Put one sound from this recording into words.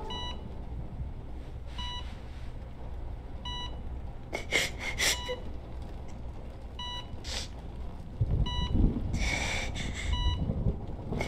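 A heart monitor beeps steadily.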